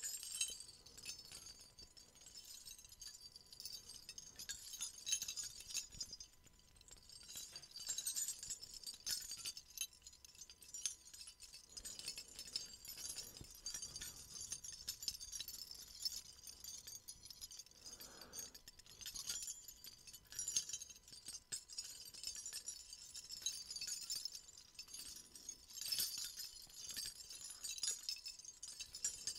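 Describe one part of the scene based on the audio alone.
Small metal jingle bells jingle and rattle close by, softly and steadily.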